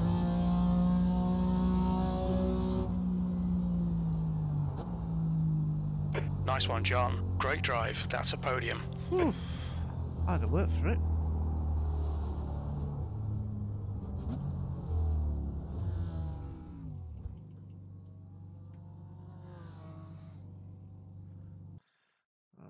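A racing car engine roars and shifts through gears, then idles.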